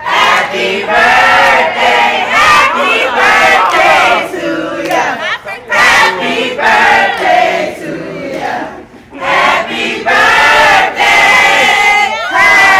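A crowd of young men and women sings along loudly.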